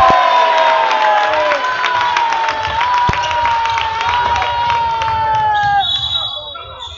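A crowd cheers loudly in an echoing hall.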